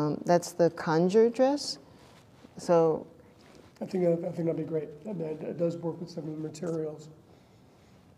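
A woman speaks calmly and thoughtfully into a microphone.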